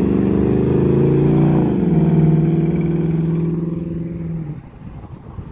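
A muscle car's engine roars loudly as it accelerates away and shifts gear.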